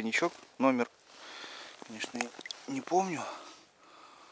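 A man speaks nearby in short phrases.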